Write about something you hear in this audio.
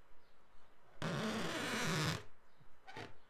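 A marker squeaks as it draws on a balloon.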